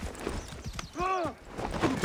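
Horse hooves pound on a dirt road.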